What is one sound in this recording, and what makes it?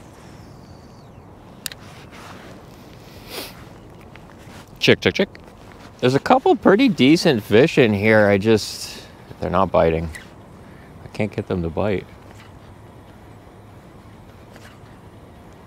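A fishing reel clicks and whirs as it is cranked.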